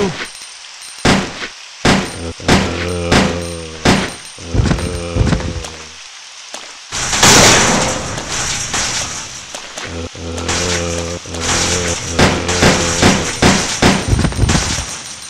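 Gunshots ring out sharply, one after another.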